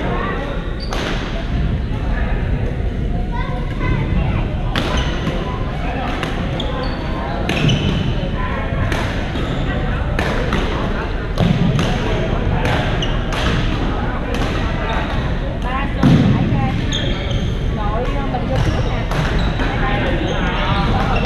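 Voices of several players chatter and call out, echoing in a large hall.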